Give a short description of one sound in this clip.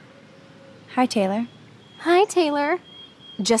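A young woman speaks sharply and close.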